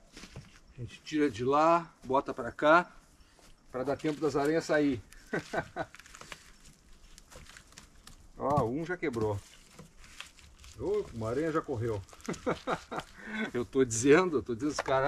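A man talks animatedly close by, outdoors.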